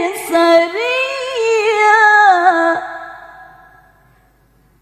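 A young woman chants a long, melodious phrase through loudspeakers, and the sound fades into a reverberant tail.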